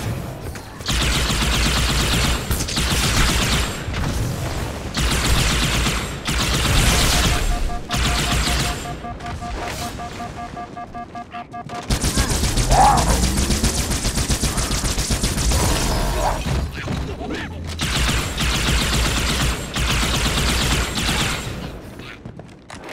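A plasma rifle fires rapid bursts of shots.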